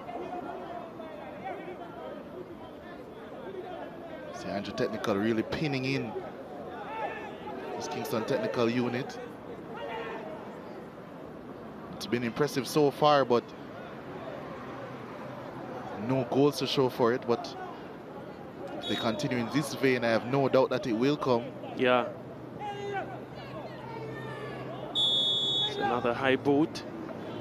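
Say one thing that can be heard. A crowd murmurs in the stands outdoors.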